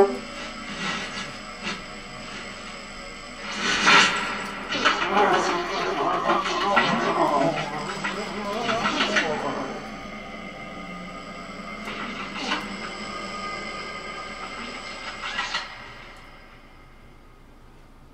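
Electronic tones hum and warble steadily.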